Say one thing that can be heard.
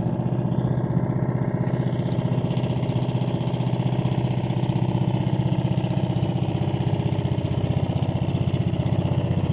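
A small boat's engine chugs steadily up close.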